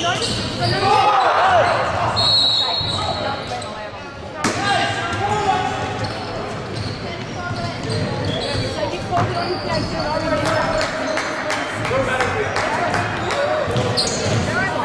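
Basketball shoes squeak sharply on a hard court in a large echoing hall.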